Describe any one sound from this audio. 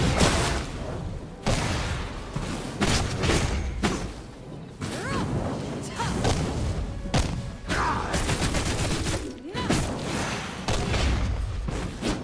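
Blades swish and strike in quick, sharp bursts.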